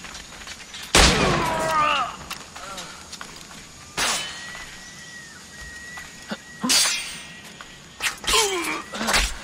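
Swords clash and clang with metallic rings.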